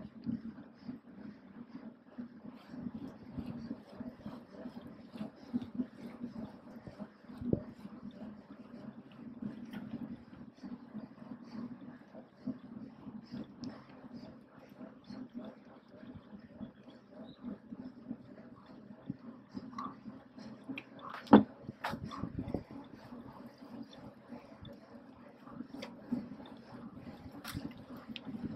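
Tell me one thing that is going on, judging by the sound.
Bicycle gears and chains click and rattle.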